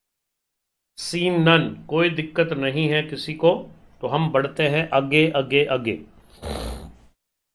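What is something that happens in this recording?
A middle-aged man talks with animation into a close microphone.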